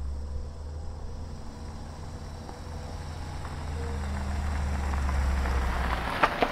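A car engine rumbles low as the car rolls slowly closer.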